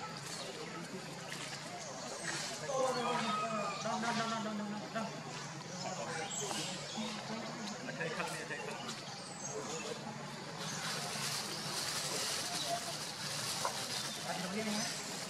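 A plastic bag crinkles and rustles as a monkey handles it.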